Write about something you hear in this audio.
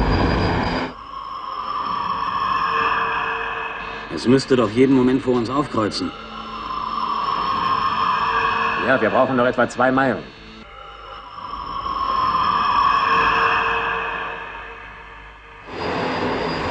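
A landing craft's engine hums and swells.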